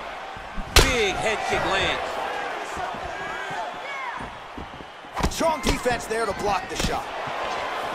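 Punches land with sharp thuds.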